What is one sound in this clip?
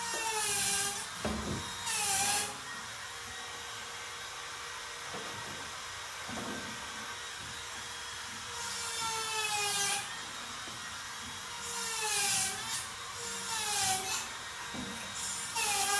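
Wooden boards knock and slide on a workbench.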